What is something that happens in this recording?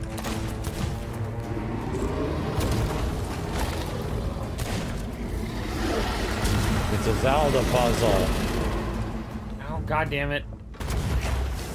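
Several men talk with animation through microphones.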